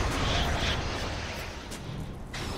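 A spell explodes with a fiery burst.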